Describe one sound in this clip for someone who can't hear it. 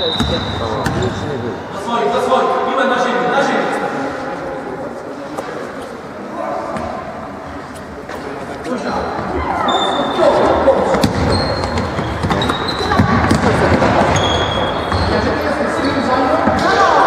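Young girls shout and call out across the hall.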